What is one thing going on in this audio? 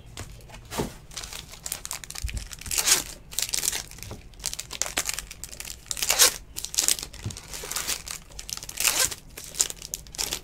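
Plastic card wrappers crinkle and rustle as they are torn open.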